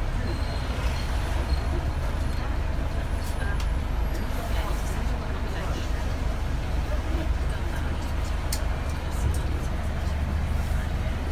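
A bus engine rumbles steadily while riding along.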